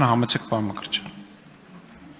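A young man speaks briefly into a microphone in a large echoing hall.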